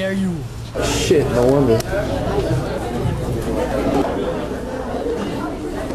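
A young man talks close by.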